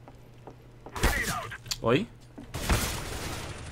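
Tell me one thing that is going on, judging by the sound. A sniper rifle fires with a loud crack.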